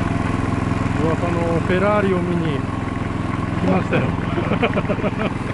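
A man speaks loudly over the engine noise nearby.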